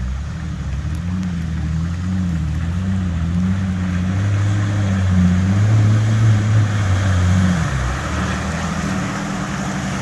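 An off-road vehicle's engine rumbles and revs as it approaches.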